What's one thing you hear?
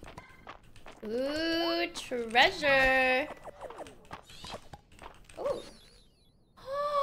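A young woman speaks and exclaims with animation into a microphone, close by.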